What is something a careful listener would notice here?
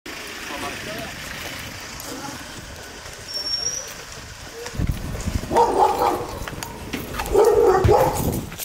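Footsteps of several people walk briskly on pavement outdoors.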